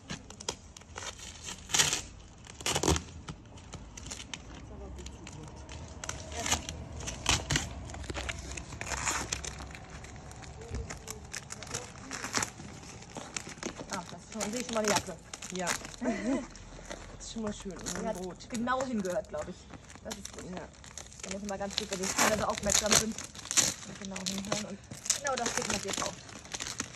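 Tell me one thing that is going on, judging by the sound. Cardboard and packing material rustle and crinkle close by.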